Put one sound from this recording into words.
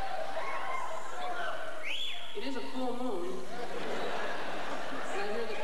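A woman sings loudly through a microphone.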